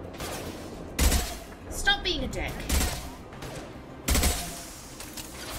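Heavy gunshots boom in short, loud bursts.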